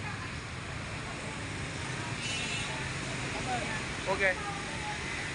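Motorbike engines hum and traffic murmurs steadily outdoors.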